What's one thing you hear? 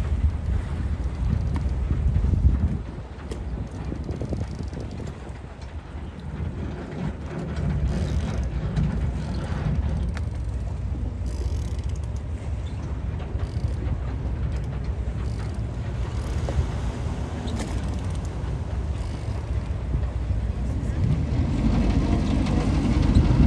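Water laps and churns against a boat's hull, outdoors in a light wind.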